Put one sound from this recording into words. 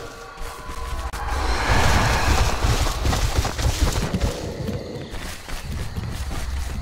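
Footsteps crunch over dirt and leaves.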